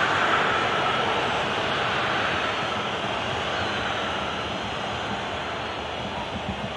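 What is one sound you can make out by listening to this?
A large stadium crowd roars steadily and slowly fades.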